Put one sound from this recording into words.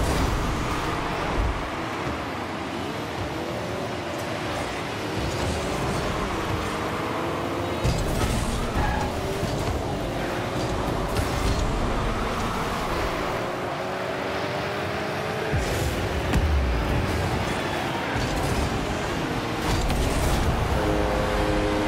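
A video game car engine whines and rises and falls in pitch.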